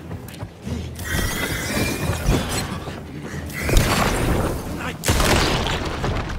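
A man shouts and snarls aggressively.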